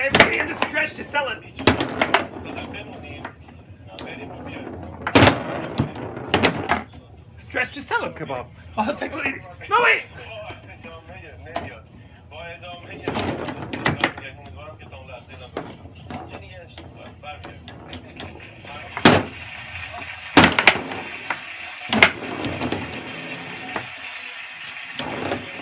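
Metal rods slide and clatter as players spin.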